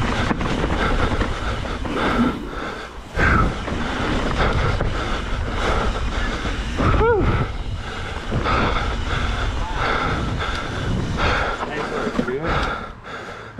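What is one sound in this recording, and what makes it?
A bicycle rattles and rumbles over a bumpy dirt trail.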